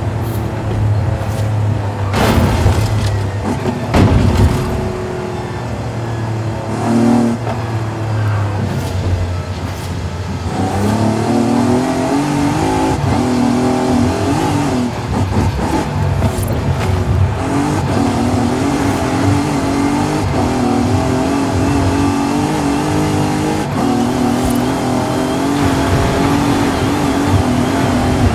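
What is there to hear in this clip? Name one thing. A car engine roars steadily, rising and falling as it revs.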